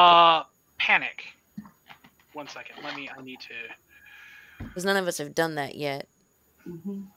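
A woman speaks and laughs over an online call.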